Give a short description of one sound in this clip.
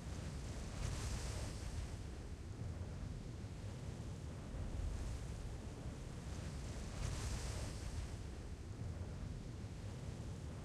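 Wind rushes and rumbles past a descending parachute.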